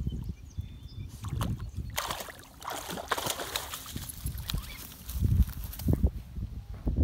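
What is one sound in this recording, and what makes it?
A small dog splashes through shallow water.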